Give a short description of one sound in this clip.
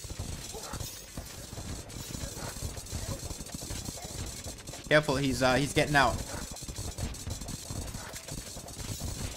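Video game weapons zap and crackle rapidly.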